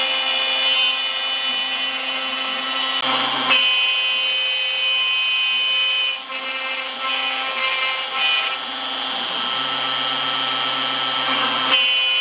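Stepper motors hum and shift pitch as the machine moves.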